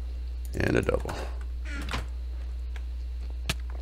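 A wooden chest closes with a creak.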